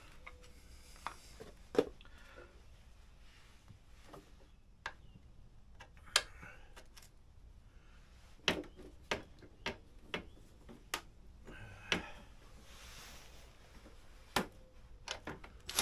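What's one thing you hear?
Metal tools clink and knock against metal parts.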